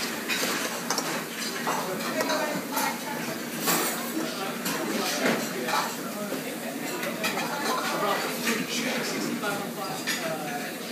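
A metal spoon scrapes and clinks against a metal bowl.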